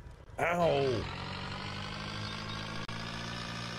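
A small engine hums steadily.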